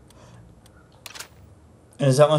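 A short electronic click sounds.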